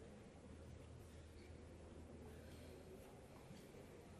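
A man reads out slowly through a microphone in a large hall.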